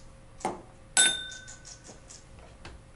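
A glass clinks on a hard counter.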